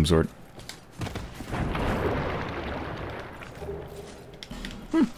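Armoured footsteps splash through shallow water.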